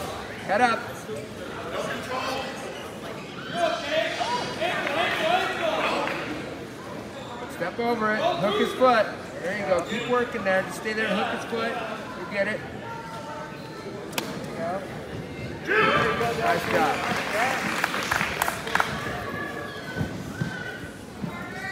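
A crowd of young spectators shouts and cheers in a large echoing gym.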